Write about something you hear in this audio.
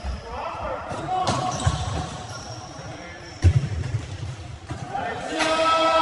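Young men shout and call out to each other in an echoing hall.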